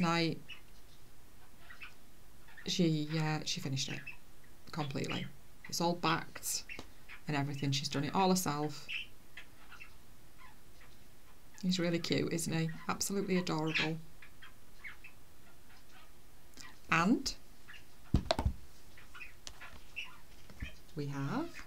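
A middle-aged woman talks calmly and closely into a microphone, in short bursts with pauses.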